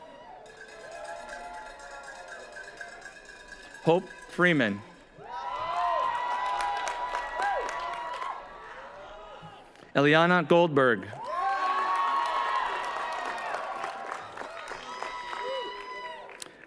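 A crowd cheers and whoops loudly outdoors.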